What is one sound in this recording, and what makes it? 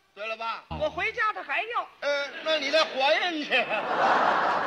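A man speaks with animation in a cartoon voice.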